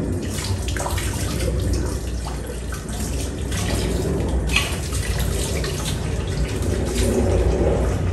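Tap water runs and splashes into a sink.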